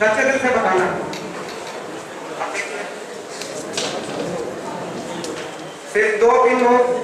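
A man speaks with animation into a microphone, heard through a loudspeaker in an echoing room.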